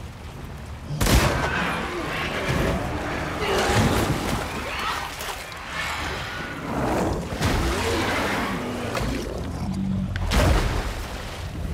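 A monstrous creature roars and growls loudly.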